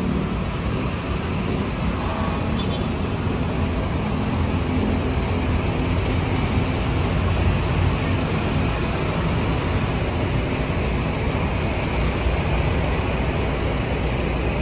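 City traffic rumbles steadily nearby outdoors.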